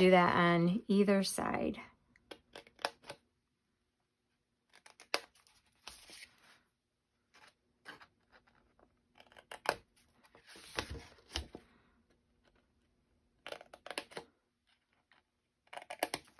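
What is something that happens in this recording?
Scissors snip through paper in short bursts.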